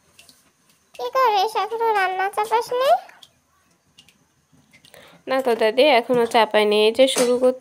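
A woman speaks in a high, lilting voice close by.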